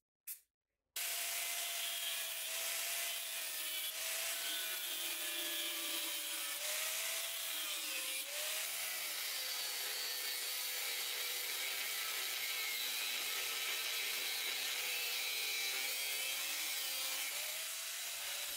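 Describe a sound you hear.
An angle grinder whines loudly as it cuts into metal.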